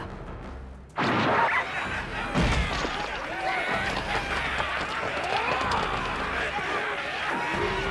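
A crowd of men yell and clash in battle.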